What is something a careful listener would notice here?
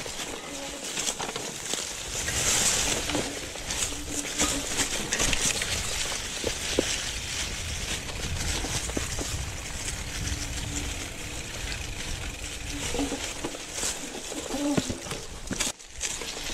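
Bicycle tyres rumble and crunch over a rough dirt trail covered in dry leaves.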